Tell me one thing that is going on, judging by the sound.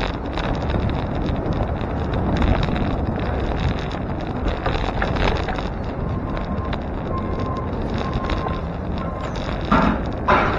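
Bicycle tyres roll steadily over rough pavement.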